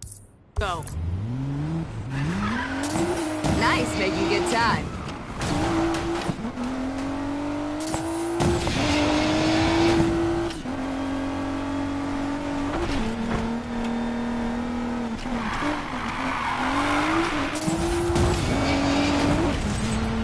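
A car engine revs hard, its pitch rising and falling through the gears.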